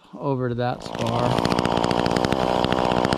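A chainsaw engine runs loudly, close by.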